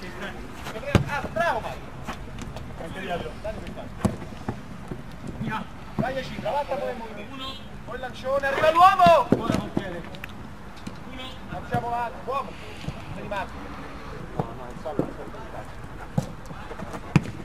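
A football thuds as players kick it.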